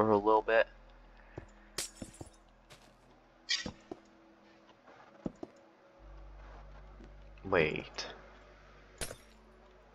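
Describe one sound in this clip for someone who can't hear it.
Blocks are placed with short glassy clinks.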